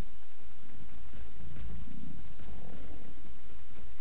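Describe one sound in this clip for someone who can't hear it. A large creature growls low nearby.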